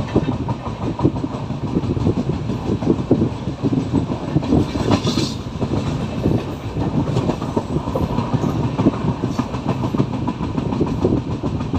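A train rumbles and rattles steadily along the tracks, heard close up through an open door.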